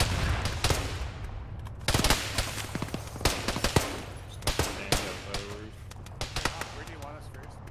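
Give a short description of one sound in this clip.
Gunshots crack and echo loudly outdoors.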